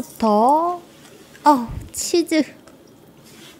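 A young woman speaks close to a microphone in a high, playful voice.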